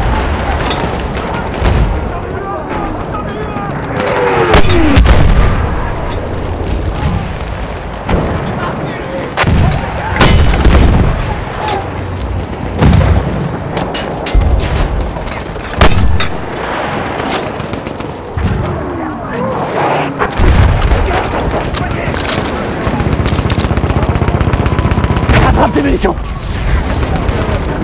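Gunshots crack sharply in quick bursts.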